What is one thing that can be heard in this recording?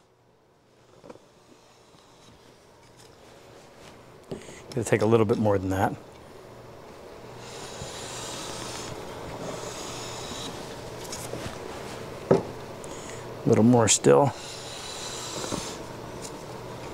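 A hand plane shaves along a wooden board with a soft hiss.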